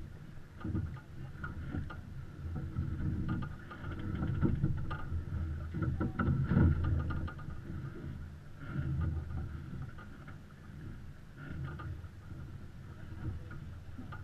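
Water splashes and rushes along a boat's hull.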